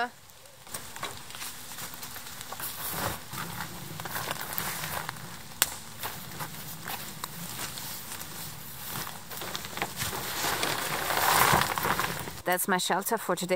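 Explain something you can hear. A man rustles a crinkly foil sheet.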